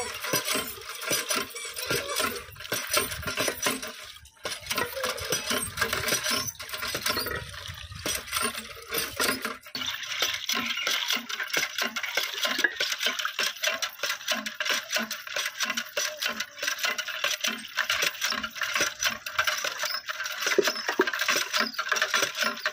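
Metal dishes clink and clatter as they are rinsed.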